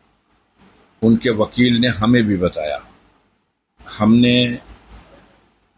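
An elderly man speaks firmly and with emphasis, close by.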